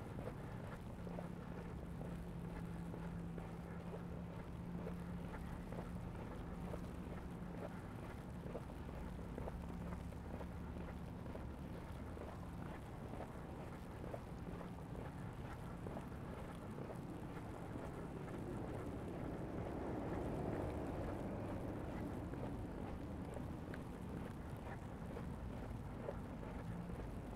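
Footsteps crunch steadily through fresh snow.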